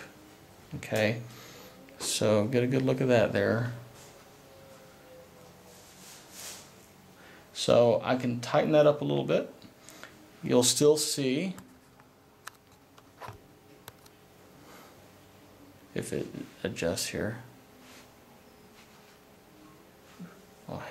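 A cord rustles softly as it is pulled through a knot.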